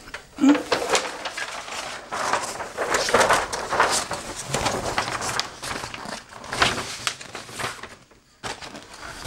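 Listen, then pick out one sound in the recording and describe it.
Wrapping paper rustles and crinkles as it is handled and unfolded.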